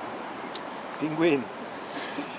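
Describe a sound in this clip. A penguin gives a short braying call nearby.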